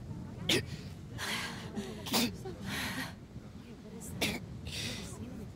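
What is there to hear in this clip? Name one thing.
A woman sobs.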